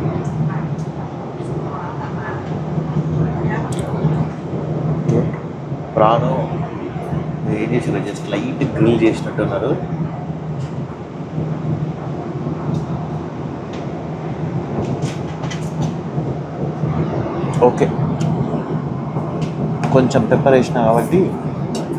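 A steady low drone hums throughout.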